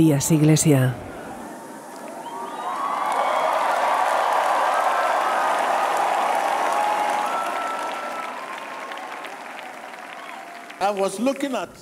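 A large crowd cheers and claps in a big echoing hall.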